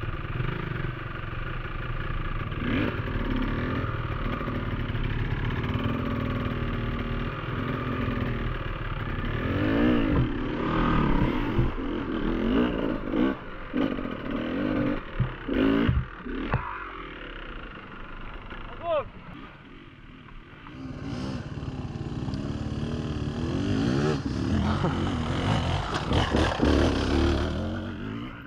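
Another dirt bike engine revs ahead, whining and sputtering.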